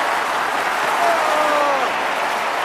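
A man shouts and sings loudly.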